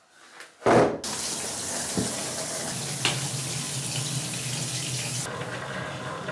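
Water runs from a tap into a bathtub.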